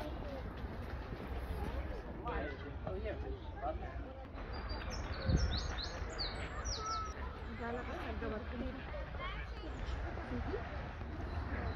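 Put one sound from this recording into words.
Men and women chat quietly at a distance outdoors.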